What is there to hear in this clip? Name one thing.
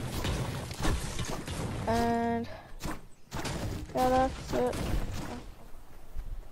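A pickaxe strikes stone and wood with sharp, repeated thuds.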